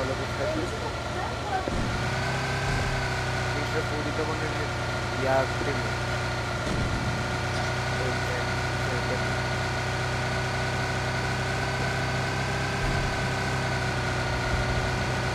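A car engine hums steadily as a car drives over rough ground.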